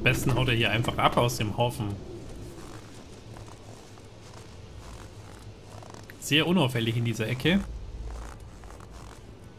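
Footsteps crunch through snow.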